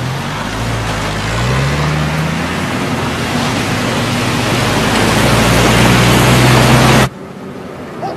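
A truck engine rumbles loudly up close, its pitch rising as it revs.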